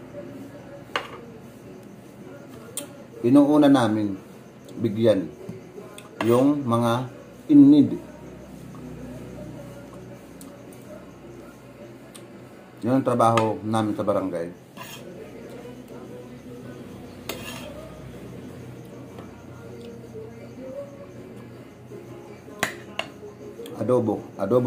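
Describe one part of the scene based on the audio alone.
A spoon and fork clink against a plate.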